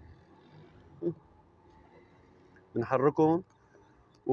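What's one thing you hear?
A spoon stirs and clinks against a glass.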